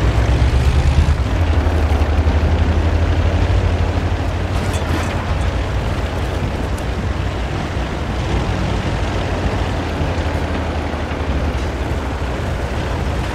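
Tank tracks clatter over the ground.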